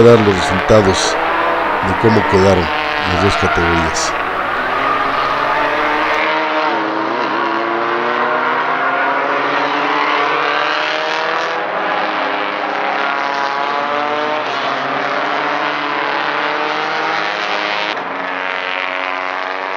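Racing car engines roar and rev as the cars pass one after another.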